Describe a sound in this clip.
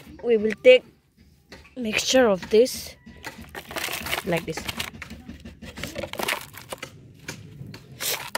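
A hand scoops and crumbles dry, gritty soil.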